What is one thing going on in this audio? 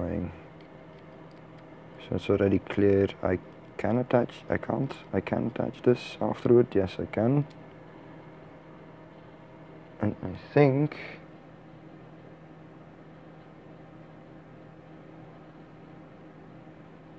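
Small plastic parts click and snap together.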